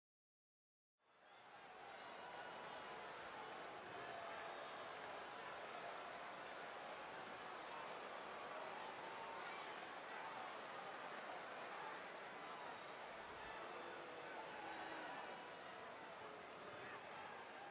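A large crowd cheers and chatters in a big echoing arena.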